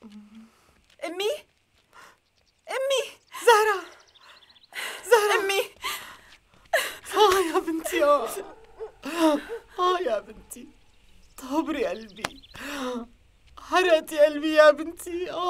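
A middle-aged woman speaks loudly and with agitation, close by.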